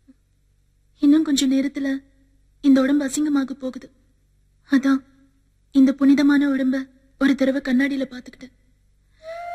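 A young woman speaks tensely and close by.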